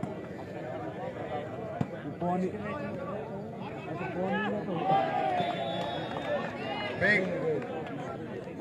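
Young men shout to each other nearby.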